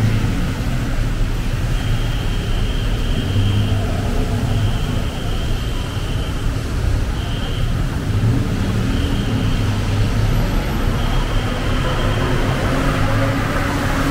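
City traffic rumbles steadily on a wet street below.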